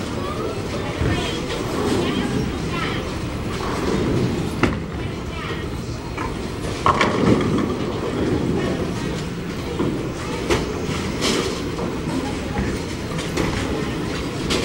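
Balls rumble and pins clatter across a large, noisy echoing hall.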